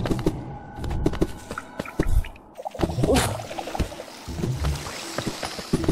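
Light footsteps patter and soft thuds land as a small game character runs and jumps.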